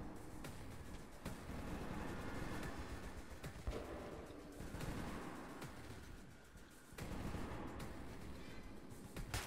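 Footsteps thud slowly on a hard floor.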